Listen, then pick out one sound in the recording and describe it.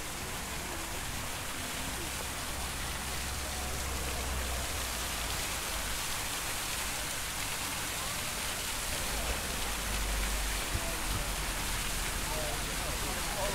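Fountain jets splash and patter steadily into water nearby.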